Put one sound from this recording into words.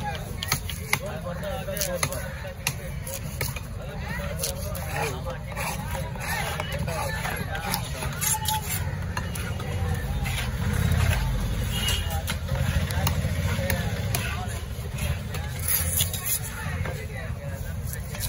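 A heavy knife chops through fish on a wooden block with sharp thuds.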